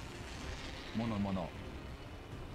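A young man speaks briefly into a microphone, close by.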